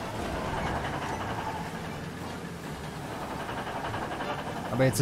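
A truck engine rumbles steadily as it drives along a street.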